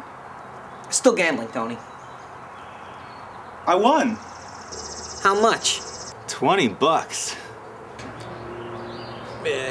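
A second young man answers calmly, close by.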